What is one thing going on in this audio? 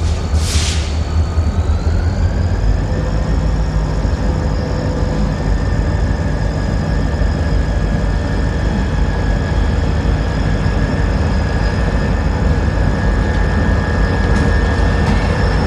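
A train horn blows in one long, steady blast.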